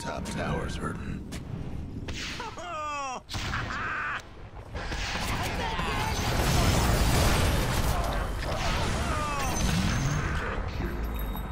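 Game weapons clash and strike with sharp hits.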